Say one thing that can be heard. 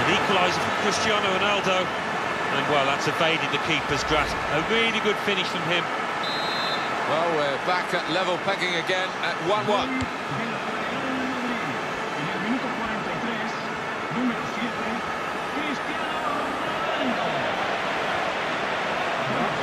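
A large crowd cheers and murmurs steadily in a big stadium.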